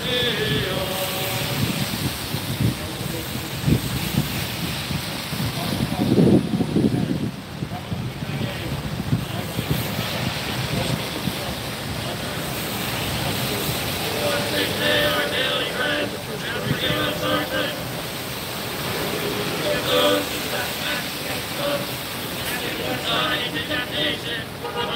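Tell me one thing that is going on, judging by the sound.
A crowd of men and women prays aloud in unison at a distance.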